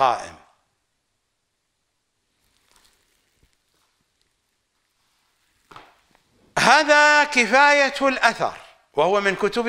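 A middle-aged man speaks slowly and deliberately into a close microphone, reciting in a melodic voice.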